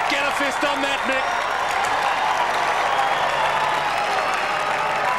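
A large crowd cheers and roars loudly outdoors.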